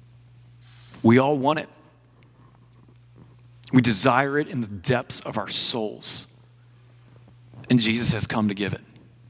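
A man speaks calmly into a microphone in a large hall, in short phrases with pauses.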